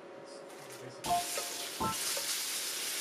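Fish sizzles loudly in a hot pan.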